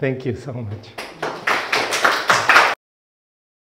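A small audience claps.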